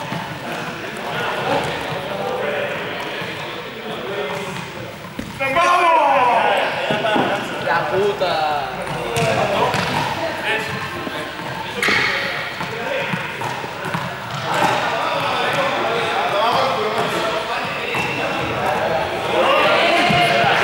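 Balls thud and bounce on a hard floor.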